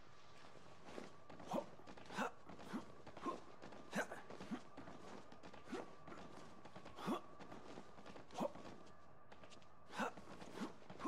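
Footsteps echo on a hard floor.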